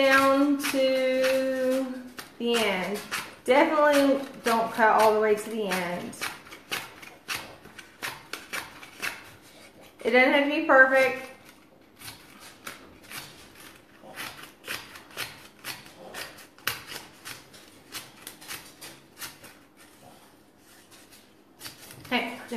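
Scissors snip through paper again and again.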